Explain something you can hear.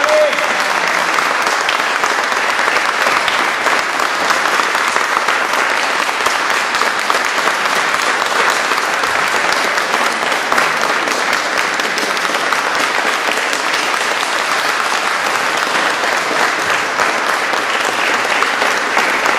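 An audience applauds steadily in a large echoing hall.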